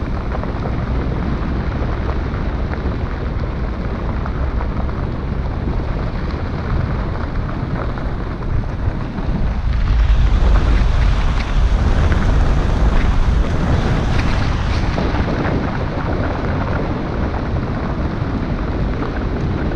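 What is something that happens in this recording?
A car engine hums and rumbles close by.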